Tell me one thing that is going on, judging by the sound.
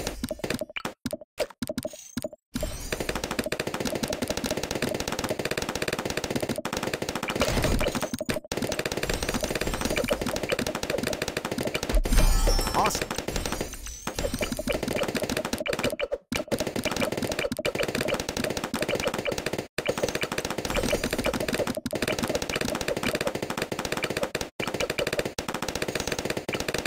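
Game balloons pop in quick, busy bursts.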